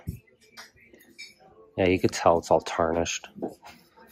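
A glass tumbler clinks softly against other glasses.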